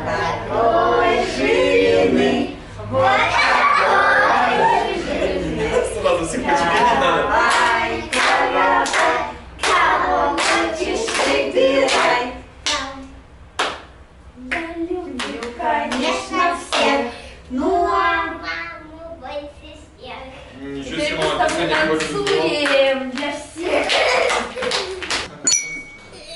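Young children sing along.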